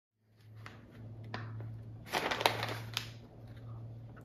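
Newspaper pages rustle and crinkle close by.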